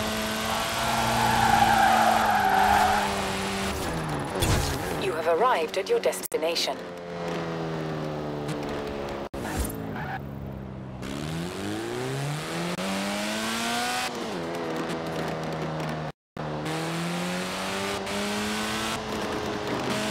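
A car engine roars, revving up and down as gears shift.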